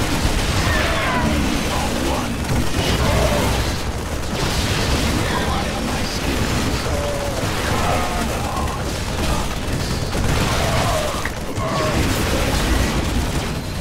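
Laser weapons zap and fire in a skirmish.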